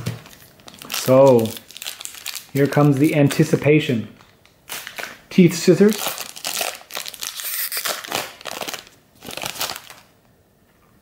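A foil wrapper crinkles and rustles as it is torn open.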